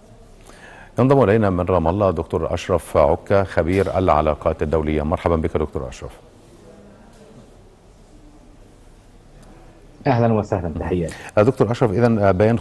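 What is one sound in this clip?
A man speaks clearly and calmly into a microphone, in a steady news-reading voice.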